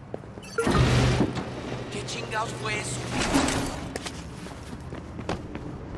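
Footsteps run on concrete.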